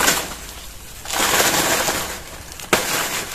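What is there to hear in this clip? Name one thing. Leaves rustle and crackle as a banana bunch is pulled down.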